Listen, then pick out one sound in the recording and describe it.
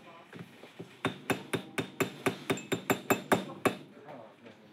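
A small hammer taps quickly on metal.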